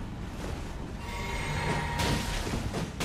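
A magic barrier hums with a bright ringing tone.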